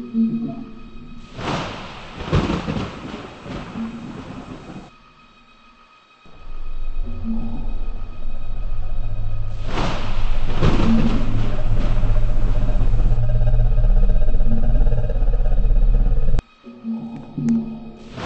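A large ceiling fan whirs steadily.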